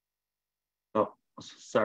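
A man speaks briefly through an online call.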